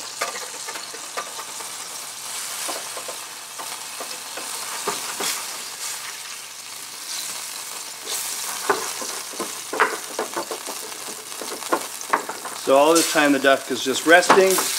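A wooden spoon scrapes and taps against a metal pan.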